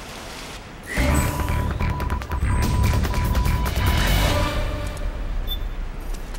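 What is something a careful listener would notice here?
Electronic menu tones beep as options are switched.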